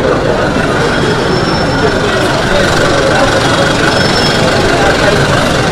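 A large crowd of people chatters and shouts outdoors.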